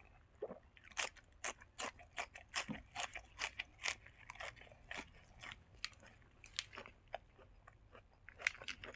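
Crisp greens crunch as a young man bites into them.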